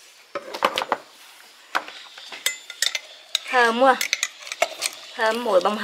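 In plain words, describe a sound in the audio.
A metal spoon clinks against a glass jar.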